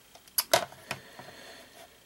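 Plastic game cartridges clack lightly as a hand moves them.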